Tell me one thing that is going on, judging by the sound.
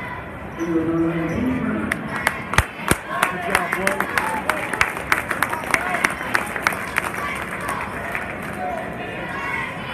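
Young women chant a cheer in unison in a large echoing gym.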